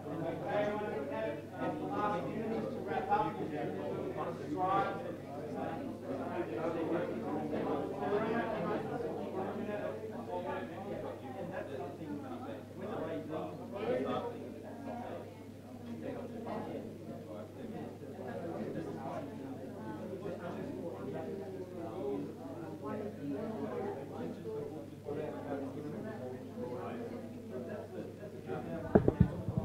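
A man speaks to a group with animation.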